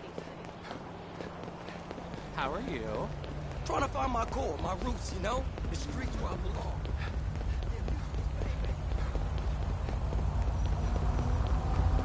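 Footsteps slap quickly on pavement.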